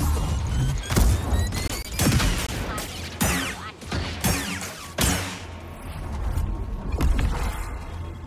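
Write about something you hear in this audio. A lightsaber swishes and clashes in repeated swings.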